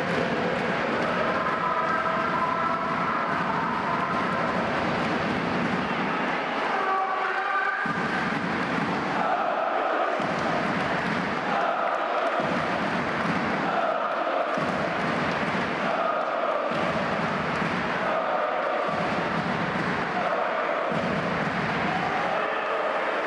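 A large crowd chants rhythmically in an echoing hall.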